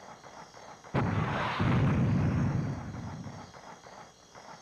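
A loud explosion booms and rumbles away.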